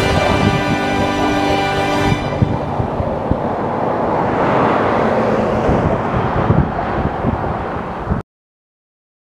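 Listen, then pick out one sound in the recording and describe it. Skateboard wheels roll on rough pavement.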